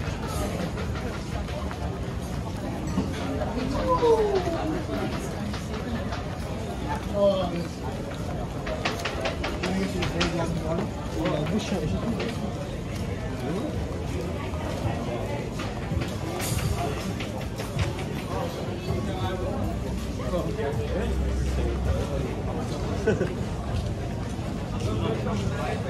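Men and women chat nearby in a lively crowd.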